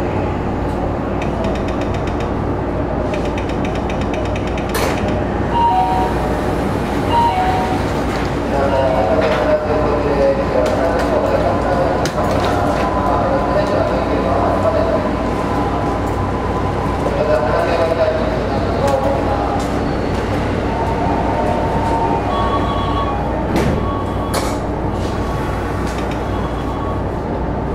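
A stationary train's electric equipment hums steadily.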